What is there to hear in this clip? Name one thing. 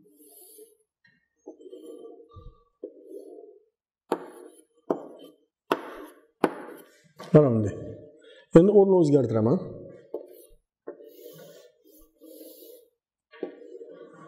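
Chalk scrapes and squeaks on a board.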